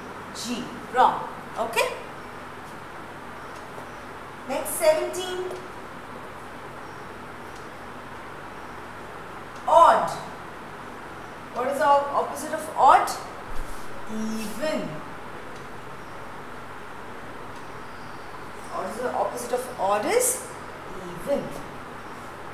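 A woman speaks calmly and clearly, close by, with pauses between phrases.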